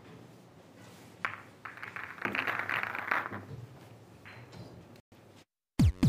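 A cue strikes a ball with a sharp tap.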